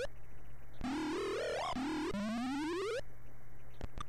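Rising electronic warbling tones play.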